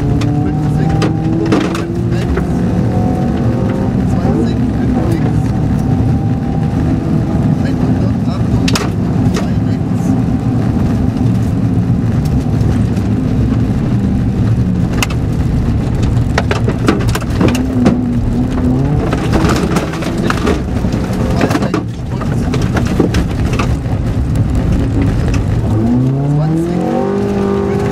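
Gravel and stones clatter against the underside of a car.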